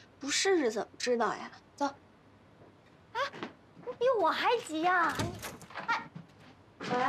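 A girl speaks urgently, close by.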